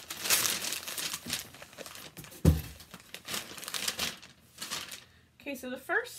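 Tissue paper rustles and crinkles as it is unwrapped.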